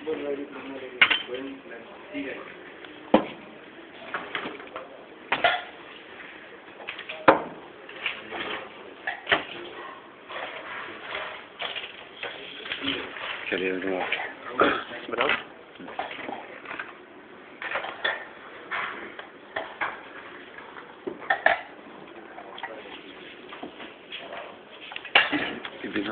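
Metal dishes clink and clatter.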